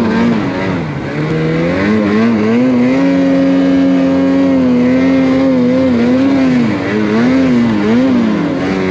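A snowmobile engine roars close by, its pitch rising and falling as the throttle changes.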